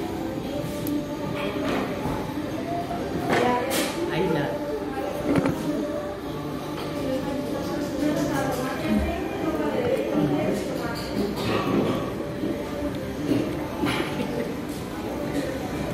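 A young girl talks casually and close by.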